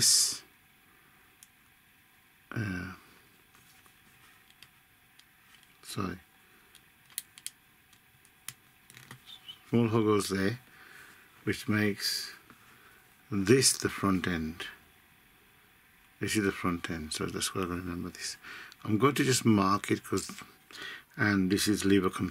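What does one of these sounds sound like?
Small plastic parts click and snap together.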